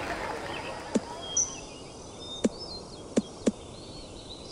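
A golf ball bounces on the ground with short thuds.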